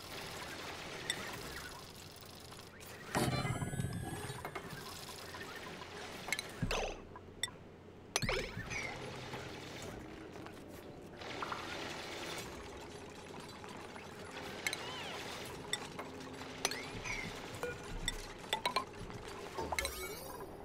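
Short game interface clicks sound now and then.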